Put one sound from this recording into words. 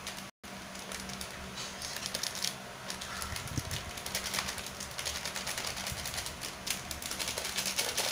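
Fingers rustle and crumble dry flour into a metal bowl.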